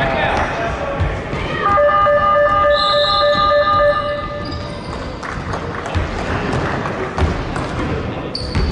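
A basketball thuds as it bounces on the court.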